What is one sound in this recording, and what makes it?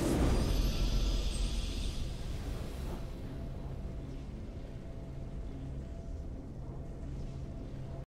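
A triumphant fanfare plays softly.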